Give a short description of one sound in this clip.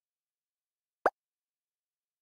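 A single short electronic blip sounds.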